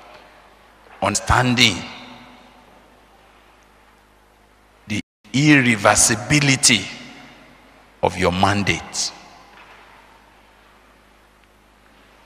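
An elderly man preaches forcefully into a microphone, his voice echoing through a large hall.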